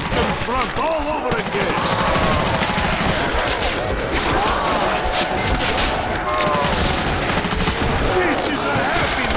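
Zombies growl and moan close by.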